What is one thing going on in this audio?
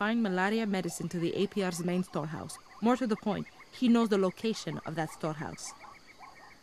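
A young woman speaks calmly and clearly up close.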